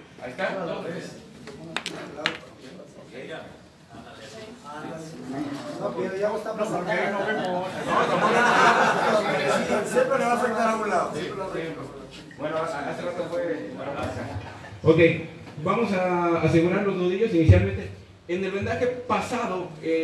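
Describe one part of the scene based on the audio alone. Several men and women talk over one another in a room that echoes.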